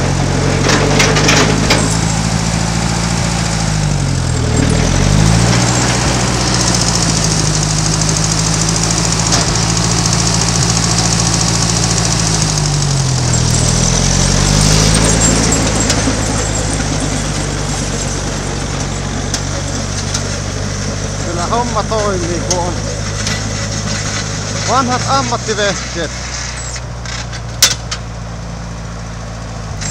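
A snow blower whirs and throws snow with a rushing hiss.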